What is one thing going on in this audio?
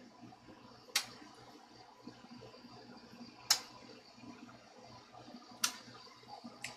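A small tool clicks sharply against a guitar.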